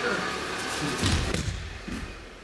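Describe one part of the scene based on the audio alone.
A person falls and slaps hard onto a padded mat.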